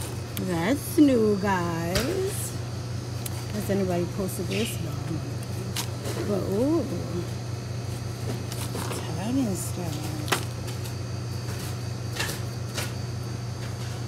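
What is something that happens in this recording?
A hand picks up and handles plastic cups on a shelf.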